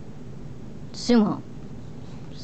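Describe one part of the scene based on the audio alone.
A dog lets out a short, high whine.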